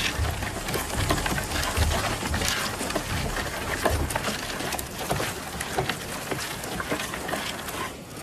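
A loaded sled scrapes and drags over dry grass.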